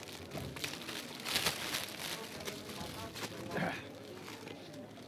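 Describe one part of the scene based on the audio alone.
Paper rustles and crinkles as a book is unwrapped.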